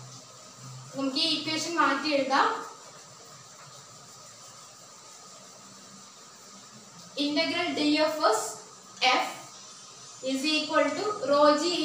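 A woman speaks calmly, as if explaining, close by.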